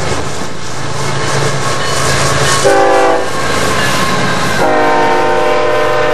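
Diesel locomotive engines roar as they pass close by.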